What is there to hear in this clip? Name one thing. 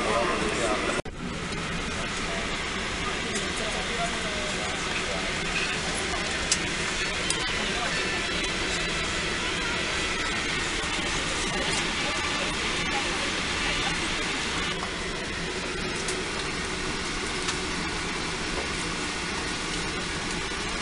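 An airliner's engines drone steadily in the cabin.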